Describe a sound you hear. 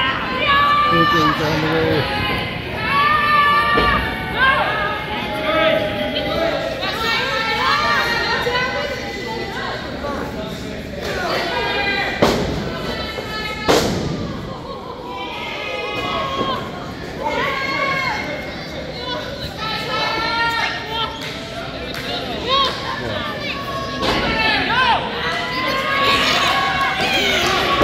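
A crowd of people chatters and shouts in a large echoing hall.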